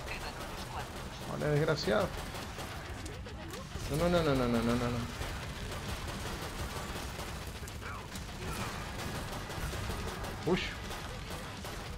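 Guns fire in rapid bursts of sharp shots.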